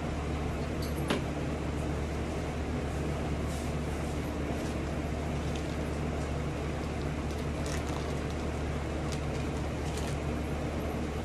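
Small objects click and clatter on a table.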